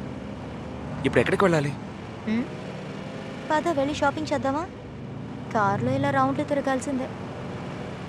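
A young woman speaks with animation nearby.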